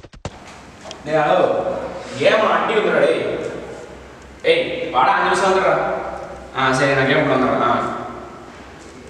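A young man talks into a phone close by, with animation.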